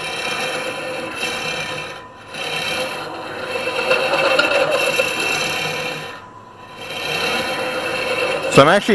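A lathe hums steadily as it spins.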